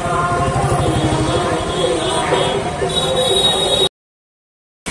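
A busy crowd chatters outdoors.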